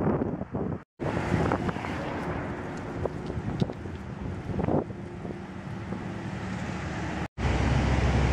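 A car drives past on a wide street.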